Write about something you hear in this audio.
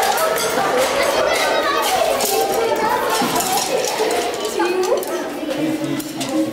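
Many children chatter and call out excitedly in an echoing room.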